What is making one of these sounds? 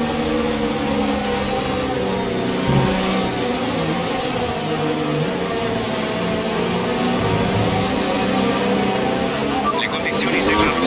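A racing car engine roars and shifts pitch as it speeds up and slows down.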